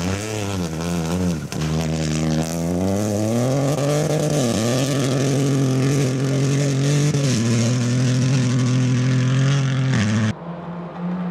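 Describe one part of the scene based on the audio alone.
Gravel sprays and crunches under a rally car's tyres.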